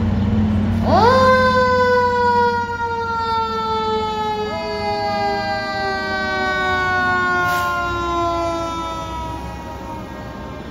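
A fire truck siren wails and slowly winds down in pitch.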